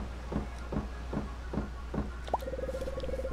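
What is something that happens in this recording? Footsteps tap quickly on wooden boards.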